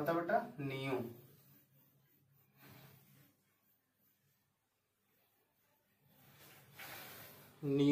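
A cloth wipes across a whiteboard.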